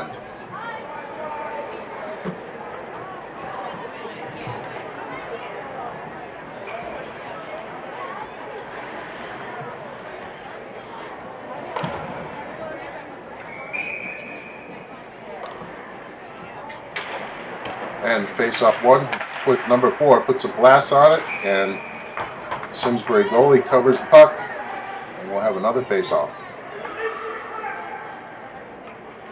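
A crowd murmurs in an echoing ice rink.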